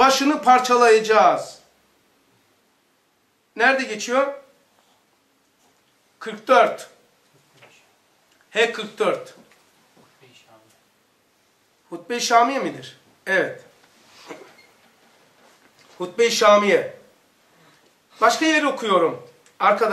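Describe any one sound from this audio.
An elderly man reads aloud calmly and clearly into a close microphone, with pauses between phrases.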